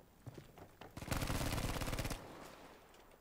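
A rifle fires a rapid burst of shots close by.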